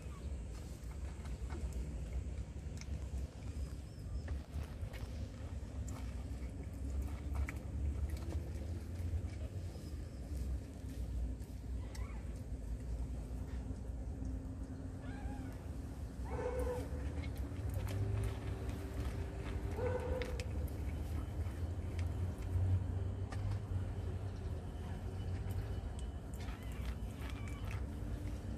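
A cat crunches dry food close by.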